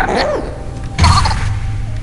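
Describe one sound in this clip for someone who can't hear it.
A weapon fires with a sharp, crackling burst.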